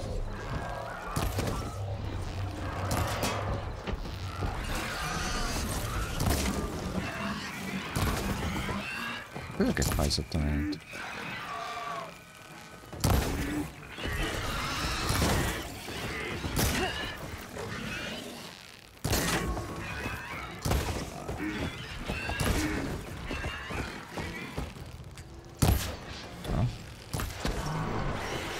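An elderly man talks with animation into a microphone.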